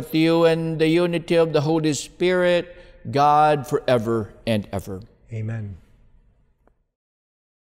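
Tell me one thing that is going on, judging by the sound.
A man chants in a sung voice through a microphone.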